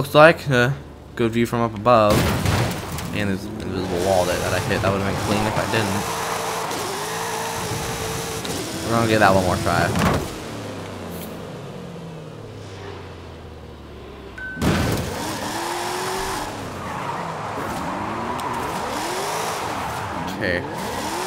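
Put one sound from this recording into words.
A racing car engine revs hard and roars.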